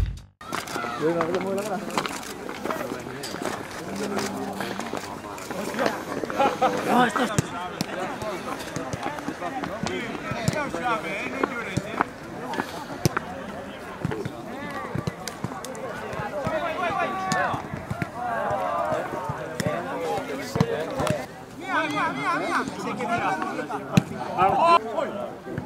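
Several young men talk and call out nearby outdoors.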